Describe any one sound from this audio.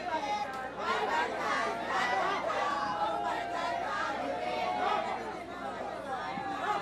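A man shouts energetically into a microphone over loudspeakers.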